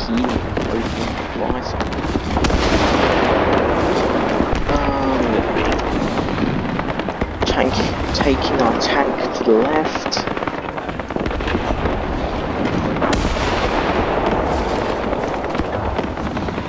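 Tank tracks clank and squeak over snow.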